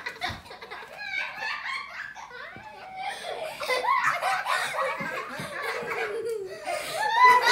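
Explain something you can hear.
A children's song with singing plays from a television.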